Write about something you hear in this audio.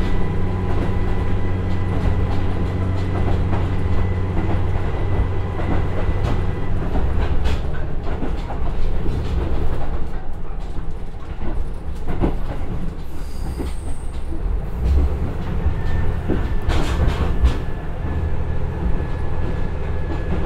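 Train wheels clatter and click over rail joints.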